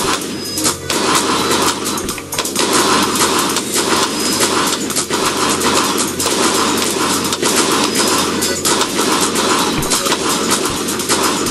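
Small cartoon blasts pop again and again.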